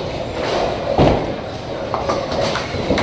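Bowling pins clatter as a ball strikes them.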